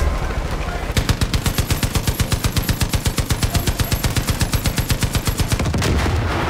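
A heavy machine gun fires in rapid, steady bursts.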